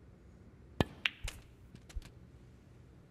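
Snooker balls clack against each other.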